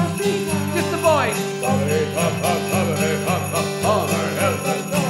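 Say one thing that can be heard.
A xylophone is struck with mallets in a quick rhythm.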